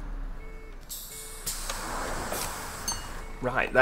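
Bus doors open with a sharp hiss of air.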